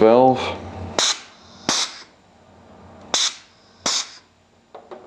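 A pneumatic cylinder clunks as it strokes.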